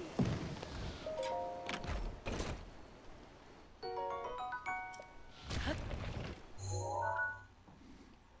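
Short electronic chimes beep in quick succession.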